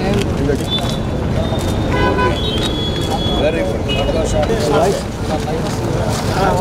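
Several men talk at once outdoors in a crowd.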